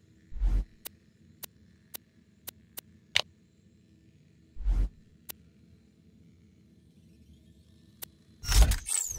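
Short electronic clicks and blips sound as a game menu is browsed.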